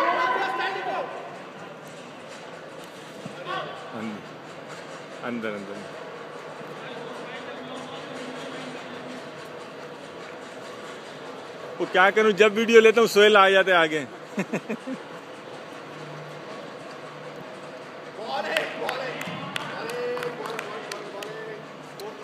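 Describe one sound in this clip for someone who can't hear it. Men shout and call out in a large echoing hall.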